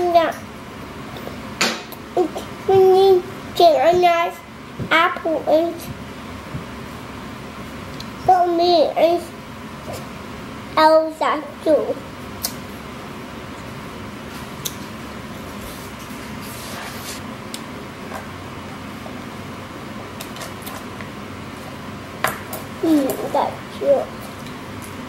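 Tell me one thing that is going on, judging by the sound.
A young girl talks softly and playfully close by.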